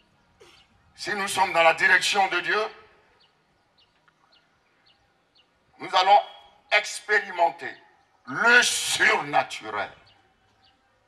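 A man preaches with animation into a microphone over loudspeakers, pausing between phrases.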